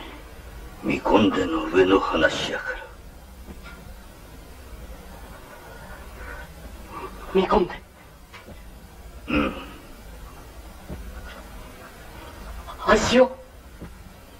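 An elderly man speaks calmly and gravely.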